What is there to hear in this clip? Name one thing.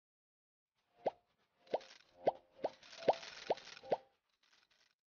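Bubbles pop in quick little bursts.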